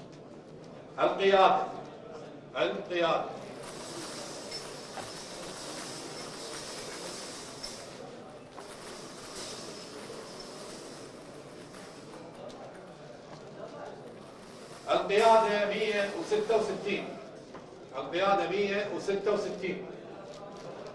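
A man reads out loud over a microphone.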